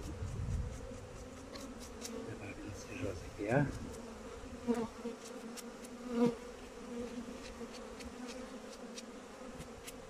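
Honeybees buzz around an open hive.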